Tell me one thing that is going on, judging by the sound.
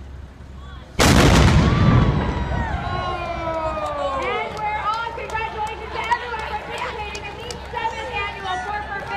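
A crowd of spectators cheers and claps outdoors.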